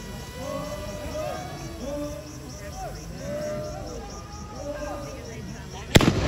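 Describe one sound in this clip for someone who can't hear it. A group of men chant loudly in unison outdoors.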